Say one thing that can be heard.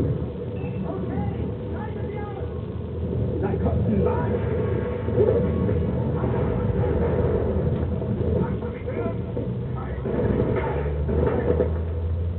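An engine rumbles steadily and low.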